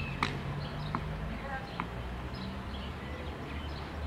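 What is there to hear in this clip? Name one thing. A tennis player bounces a ball on a clay court before serving.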